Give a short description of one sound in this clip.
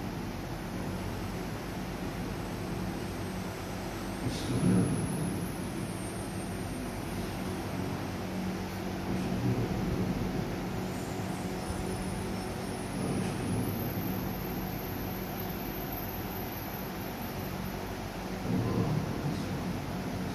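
Electric fans whir steadily.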